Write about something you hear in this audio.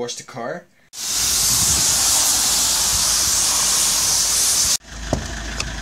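A pressure washer sprays water with a loud hiss.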